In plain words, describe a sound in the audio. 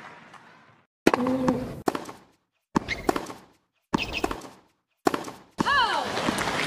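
A tennis ball is struck with sharp pops back and forth.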